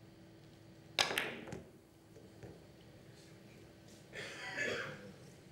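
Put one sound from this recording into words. Billiard balls knock against each other and the cushions.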